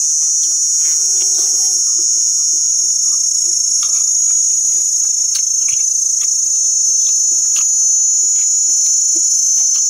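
A spoon clinks and scrapes against a metal plate.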